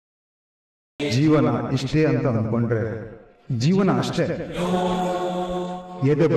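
An older man speaks with animation nearby.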